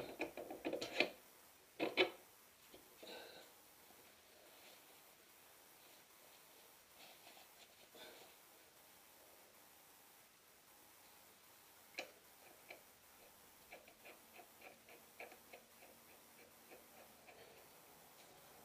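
Metal parts clink and click as a wheel hub is worked on by hand.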